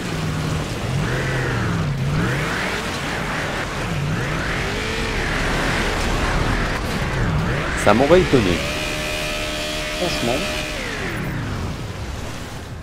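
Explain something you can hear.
A vehicle engine rumbles and whines as it drives.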